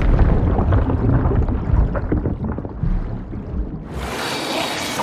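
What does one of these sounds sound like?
Water rumbles and gurgles, heard muffled as if from underwater.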